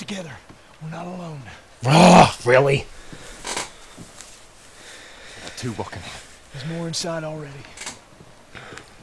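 A man in a game speaks in a low, gruff voice.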